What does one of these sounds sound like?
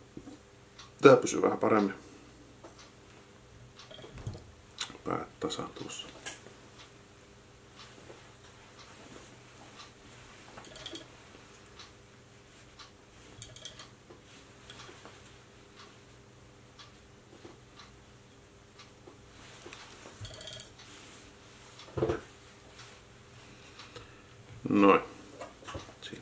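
A man speaks calmly close by, in short bursts.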